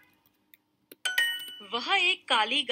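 A short bright chime rings out.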